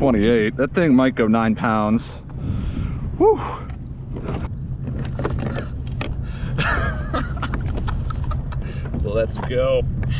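Wind blows steadily outdoors over open water.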